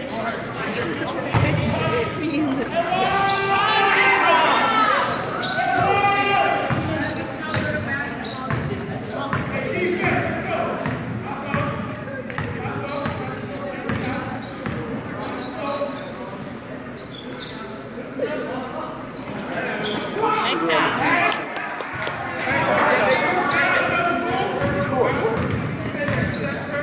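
Young players shout and call out in a large echoing gym.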